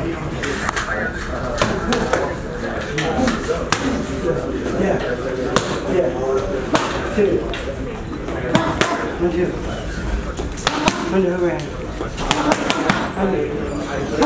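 An older man talks and calls out instructions nearby.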